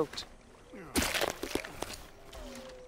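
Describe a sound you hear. Flesh tears wetly as an animal is skinned.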